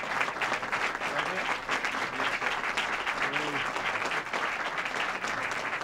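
People in a crowd murmur and talk softly.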